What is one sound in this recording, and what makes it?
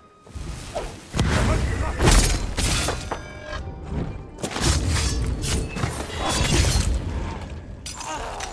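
Heavy blows and thuds land in a close fight.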